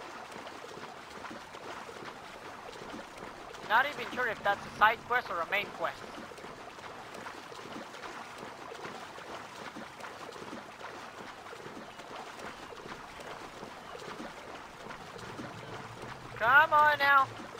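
Water splashes steadily as a swimmer strokes through the sea.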